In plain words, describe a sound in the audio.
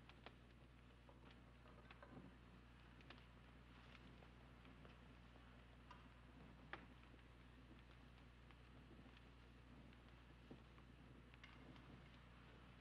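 Metal dishes clink and knock softly as they are handled.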